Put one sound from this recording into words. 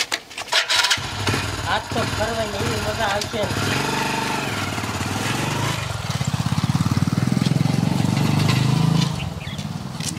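A motorcycle engine starts and rumbles, then pulls away.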